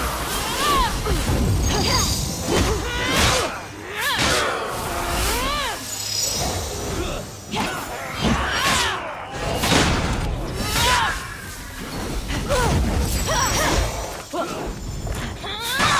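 Sword slashes whoosh and strike enemies.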